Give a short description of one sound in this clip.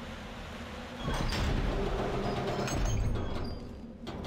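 A heavy lever creaks and grinds as it is pulled.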